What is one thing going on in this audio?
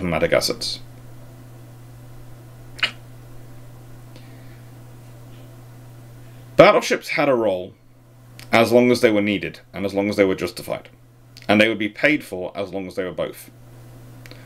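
A man speaks calmly and closely into a microphone, with pauses.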